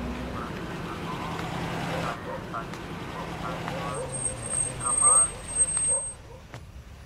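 A vehicle engine rumbles nearby.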